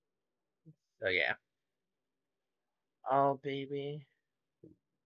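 A young man speaks close to a microphone in short bursts.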